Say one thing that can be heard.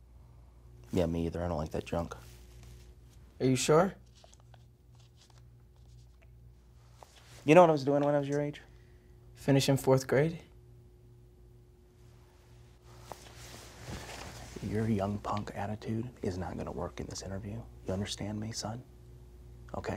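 A man speaks in a slow, flat, deadpan voice close to a microphone.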